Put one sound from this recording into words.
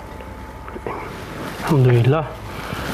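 A man recites a short prayer aloud.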